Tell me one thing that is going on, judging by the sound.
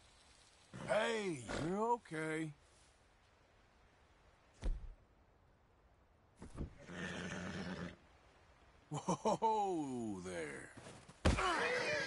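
A horse whinnies and snorts loudly.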